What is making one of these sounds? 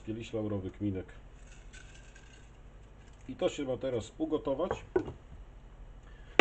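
A glass jar clinks as it is handled and set down.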